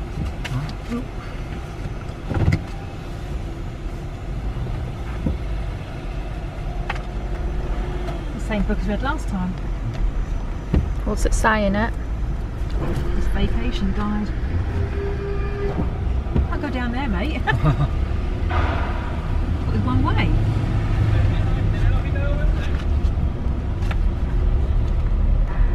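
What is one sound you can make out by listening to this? A car engine hums low and steady inside the cabin.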